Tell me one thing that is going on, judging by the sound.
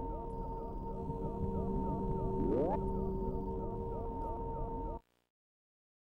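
A video game plays a loud, steady droning tune with repeating chirps.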